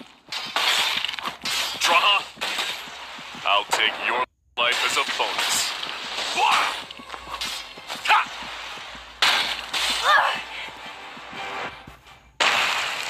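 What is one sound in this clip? Swords clash against shields in a fight.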